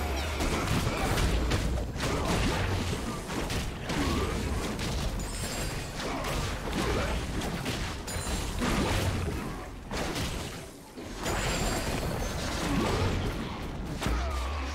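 Magic blasts and hits crackle and burst in a fast fight.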